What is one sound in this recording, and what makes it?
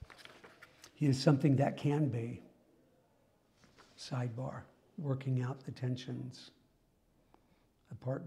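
A middle-aged man lectures calmly from a short distance.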